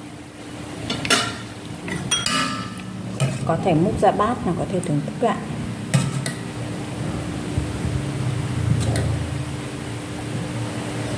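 A metal spoon clinks against a glass bowl.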